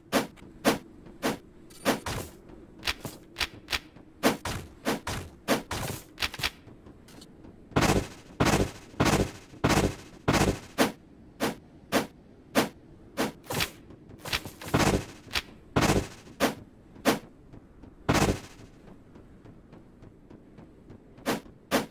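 Footsteps crunch steadily on sand.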